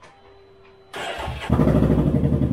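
A motorcycle engine starts up and idles loudly.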